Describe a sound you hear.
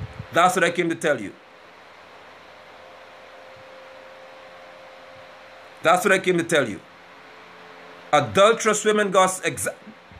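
A man speaks calmly and close to a phone microphone, with long pauses.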